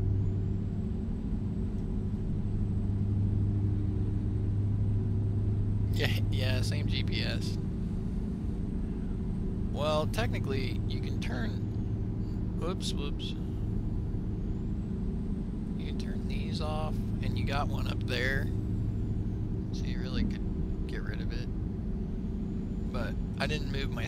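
A truck engine hums steadily in a low drone.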